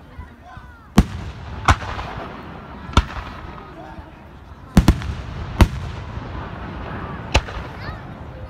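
Fireworks burst with loud, sharp booms outdoors.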